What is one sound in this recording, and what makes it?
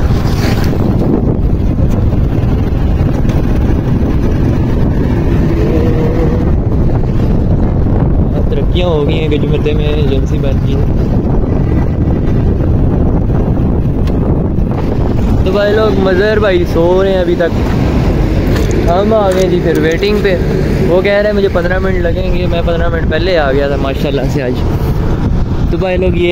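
Wind rumbles loudly against the microphone.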